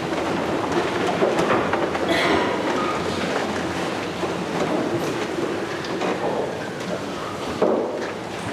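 A man reads aloud in a large echoing room.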